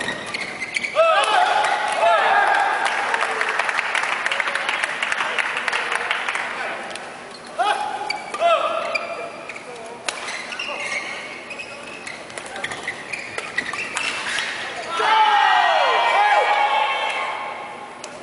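Sports shoes squeak sharply on a court floor.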